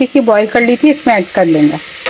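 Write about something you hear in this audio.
Chopped vegetables tumble into a metal pot.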